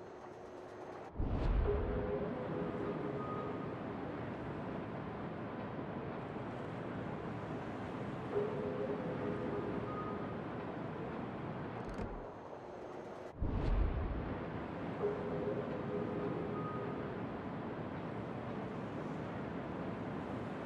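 Waves wash steadily against a moving ship's hull.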